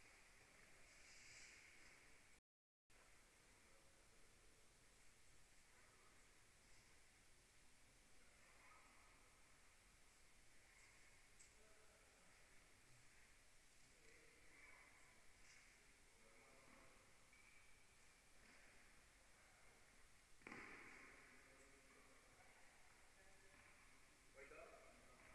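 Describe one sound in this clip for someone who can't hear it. A tennis ball is hit back and forth faintly in a large echoing hall.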